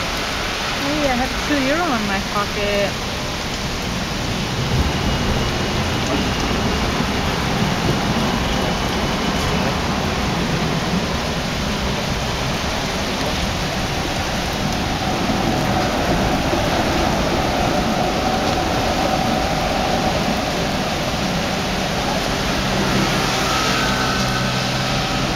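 Heavy rain pours and splashes on wet pavement outdoors.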